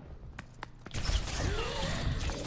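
Pistols fire in rapid bursts.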